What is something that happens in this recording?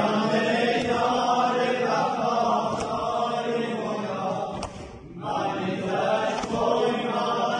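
A crowd of men chants loudly in unison in a reverberant hall.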